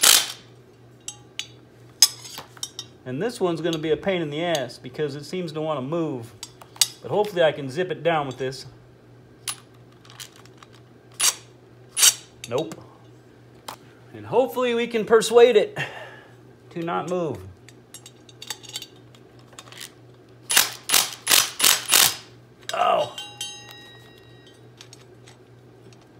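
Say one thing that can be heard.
A metal disc clinks and clanks as it is handled.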